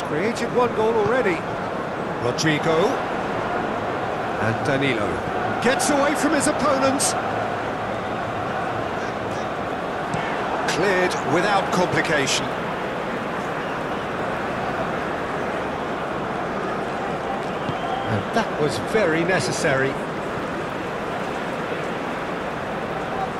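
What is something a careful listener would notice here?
A large crowd murmurs and cheers steadily in a big open stadium.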